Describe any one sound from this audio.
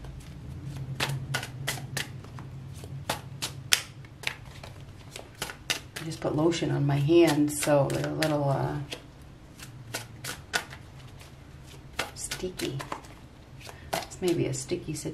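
Playing cards are shuffled with quick, soft taps and flicks.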